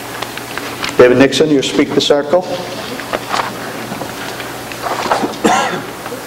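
A middle-aged man speaks into a microphone, heard through a loudspeaker in a large room.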